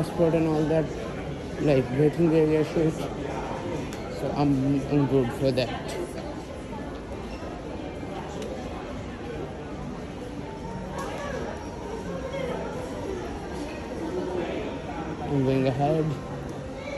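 People's voices murmur in a large echoing hall.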